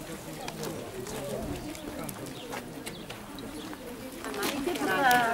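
People murmur quietly outdoors.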